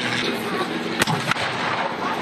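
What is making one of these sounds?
A tank cannon fires a loud booming shot.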